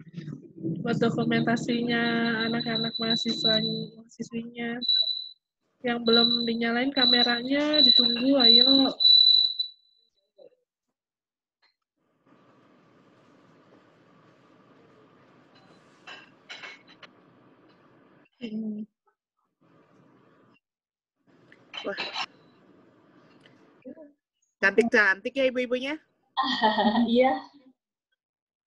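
A woman sings loudly through an online call.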